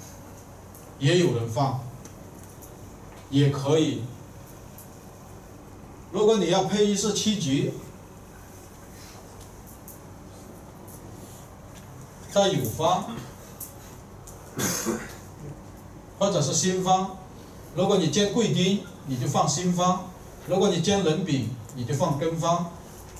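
A middle-aged man speaks calmly through a microphone, in short bursts with pauses.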